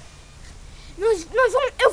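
A young boy sings close by.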